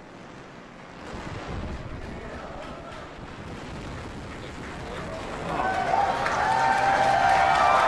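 A rocket engine roars during a landing burn.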